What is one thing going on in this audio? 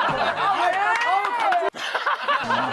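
A man laughs loudly up close.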